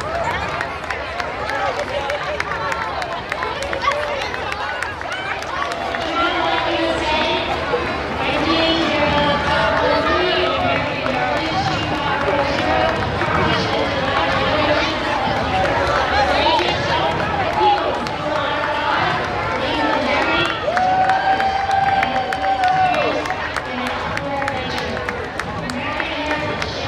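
A large outdoor crowd of men, women and children chatters and calls out all around.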